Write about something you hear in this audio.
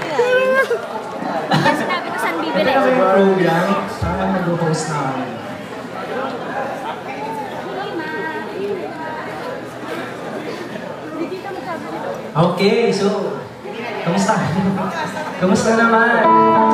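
A band plays live music through loudspeakers outdoors.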